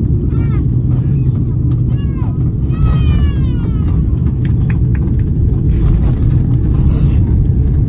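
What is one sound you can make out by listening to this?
Airplane tyres rumble on a runway.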